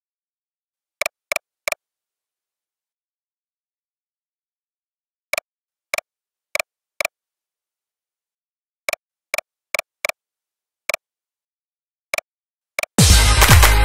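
Short, sharp electronic ticks sound at uneven intervals, sometimes in quick pairs or threes.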